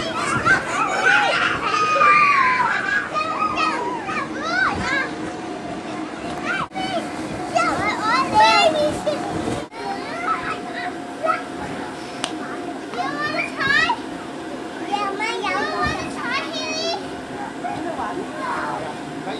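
Young children shout and squeal nearby.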